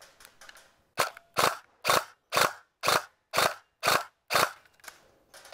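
A rifle fires single shots in quick succession outdoors.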